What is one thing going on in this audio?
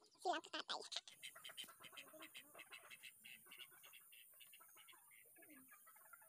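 Chickens cluck.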